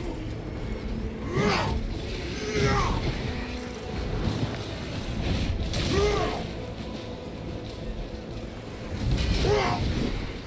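A blade swooshes through the air in heavy strikes.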